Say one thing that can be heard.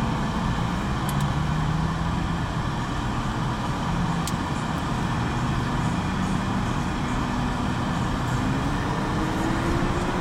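An off-road engine revs nearby.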